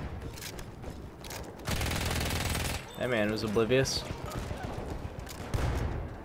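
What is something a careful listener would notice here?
A gun fires a burst of shots nearby.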